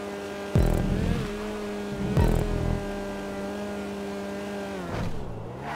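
A small car engine drones steadily, then drops in pitch.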